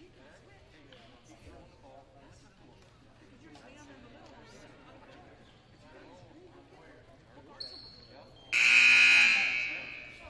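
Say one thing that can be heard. Voices murmur and chatter in a large echoing hall.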